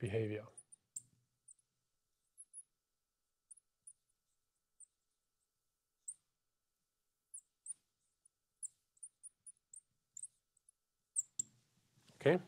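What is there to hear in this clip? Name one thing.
A marker squeaks faintly as it writes on a glass board.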